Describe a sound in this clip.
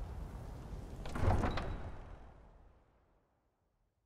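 A heavy wooden door creaks and thuds open.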